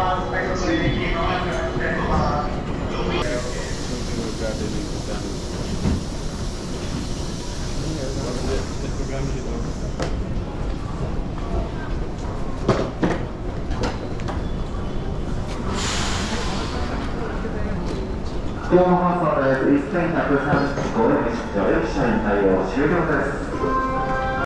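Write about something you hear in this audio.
A crowd of people murmurs and shuffles about in a large echoing station.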